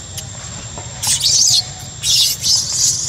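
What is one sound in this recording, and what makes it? A baby monkey shrieks loudly in short bursts.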